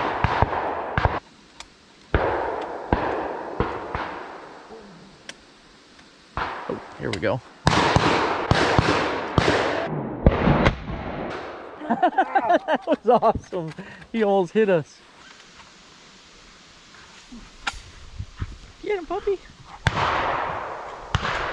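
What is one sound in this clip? A shotgun fires loudly outdoors, each blast ringing out over the trees.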